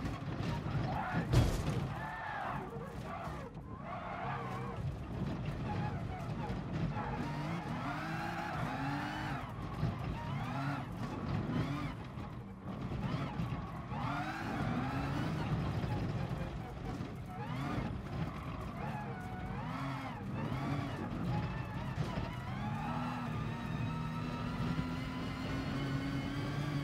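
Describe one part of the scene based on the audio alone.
A racing car engine revs up and down through gear changes.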